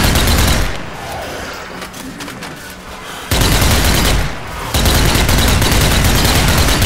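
A submachine gun fires in rapid, loud bursts.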